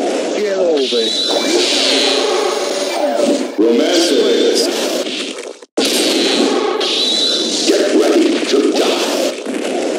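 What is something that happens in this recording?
Energy blasts roar and crackle.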